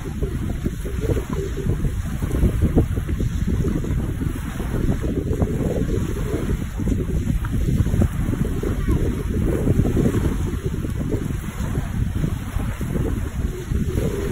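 Small waves wash gently onto a pebbly shore.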